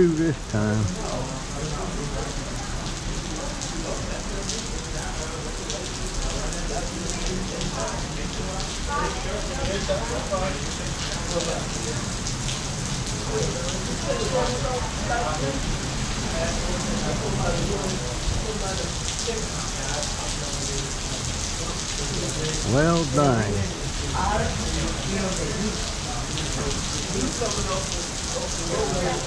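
Heavy rain pours steadily onto pavement outdoors.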